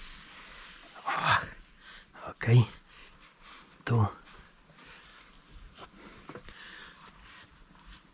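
A cloth rubs and squeaks against a leather steering wheel.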